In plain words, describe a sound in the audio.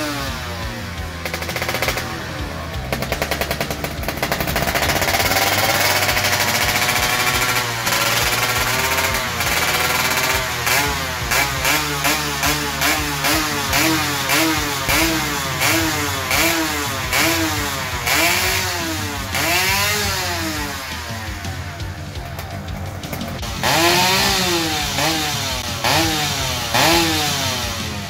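A two-stroke motorcycle engine revs up and down in sharp, repeated bursts close by.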